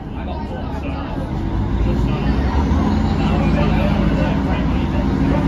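A train starts to pull away with a rising whine and rumble.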